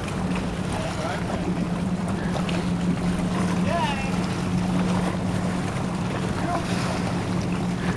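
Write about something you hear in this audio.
Water laps gently nearby.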